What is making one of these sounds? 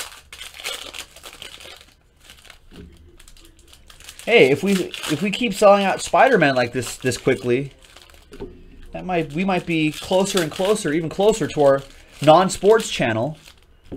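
Foil card packs crinkle and tear as they are opened.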